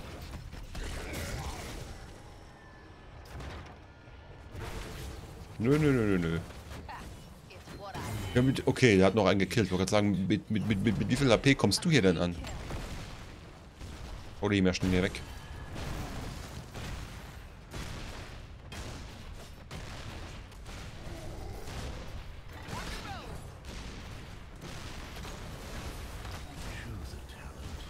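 Game battle effects crackle and boom.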